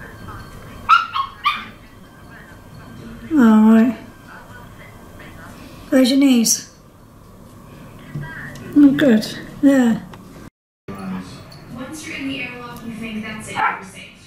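Small dogs bark and yelp in short bursts nearby.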